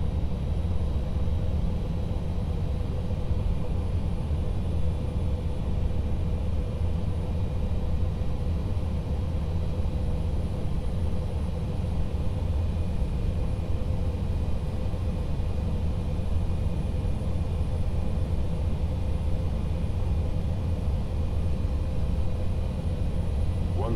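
The engines of a jet airliner drone steadily, heard from inside the cockpit on approach.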